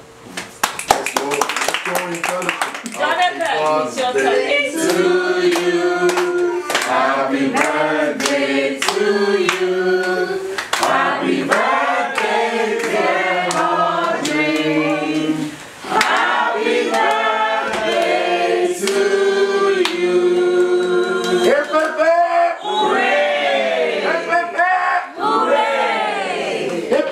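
A woman sings loudly.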